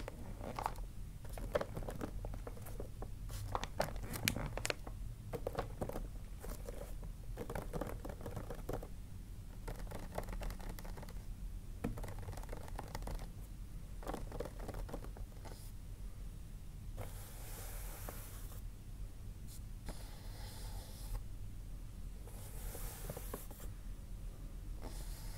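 Hands rub and crinkle wrapping paper.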